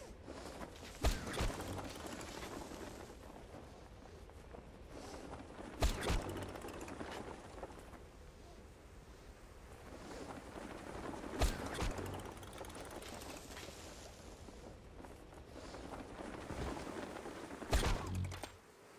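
A parachute canopy snaps open with a sharp thud, several times.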